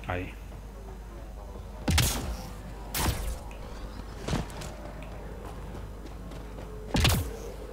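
Heavy footsteps thud on sand.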